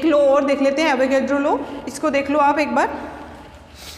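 A woman speaks clearly and with animation, in a room that echoes.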